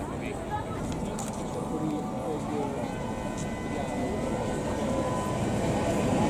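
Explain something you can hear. A tram rolls slowly along the tracks.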